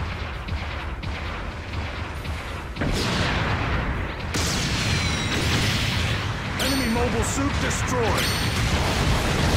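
A large robot's engines roar and whoosh as it boosts forward.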